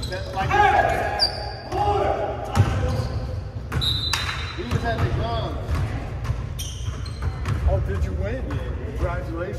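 Sneakers squeak sharply on a wooden court in a large echoing gym.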